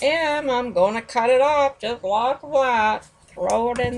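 A hand picks up and sets down a plastic ruler on a table.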